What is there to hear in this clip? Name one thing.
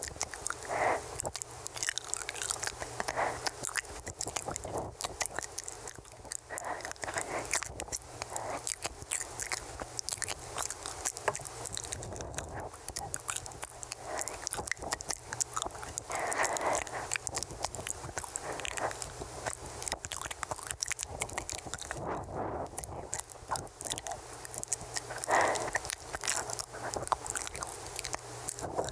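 Soft mouth clicks and lip sounds crackle close to a microphone.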